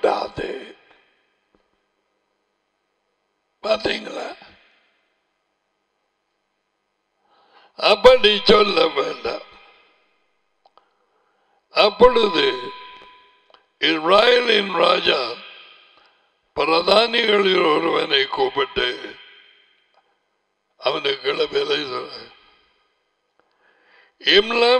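An elderly man speaks calmly into a close headset microphone, in short phrases with pauses.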